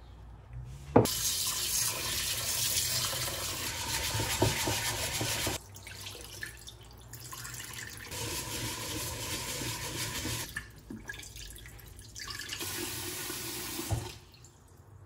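Tap water pours into a pot and splashes.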